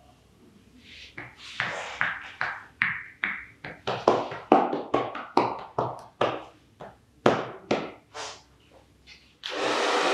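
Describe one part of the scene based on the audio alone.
Hands chop and slap rhythmically on someone's shoulders and back.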